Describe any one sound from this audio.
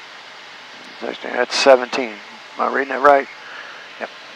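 A man speaks briefly close by.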